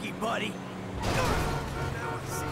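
A car crashes into another car with a loud bang.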